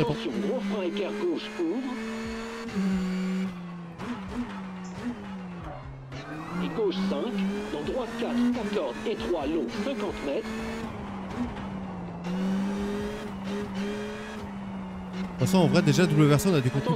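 A racing car engine drones steadily, its pitch rising and falling with gear changes.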